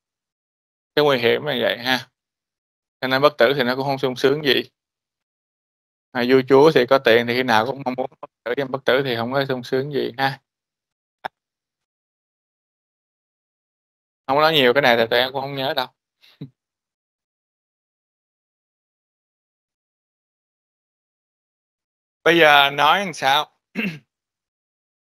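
A man lectures calmly through a microphone in an online call, with pauses.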